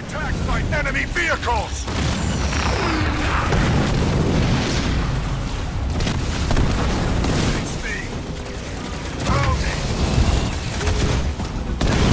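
Laser weapons fire with sharp buzzing zaps.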